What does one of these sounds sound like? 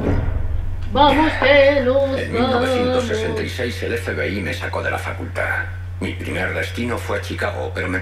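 An elderly man speaks calmly and steadily.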